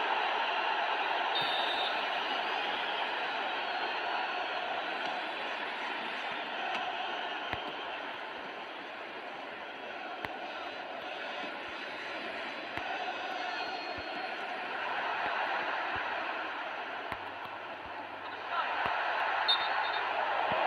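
A stadium crowd roars steadily, swelling louder near the end.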